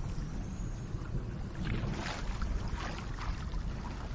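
A wooden paddle splashes and swishes through water.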